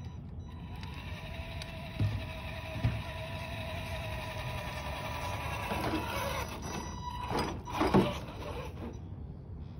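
A small electric motor whines as a toy truck drives closer and passes by.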